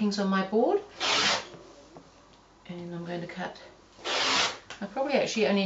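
A rotary cutter slices through fabric with a short rasp.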